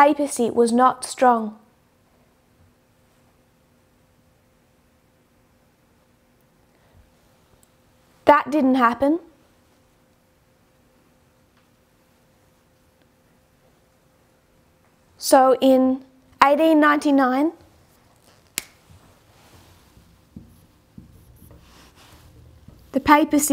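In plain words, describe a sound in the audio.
A woman speaks calmly into a close microphone, with long pauses.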